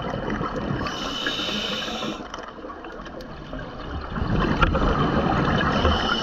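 A diver's exhaled bubbles rush and gurgle underwater.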